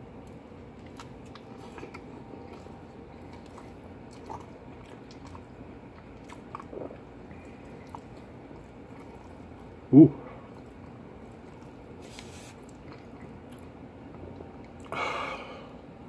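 A man chews food noisily.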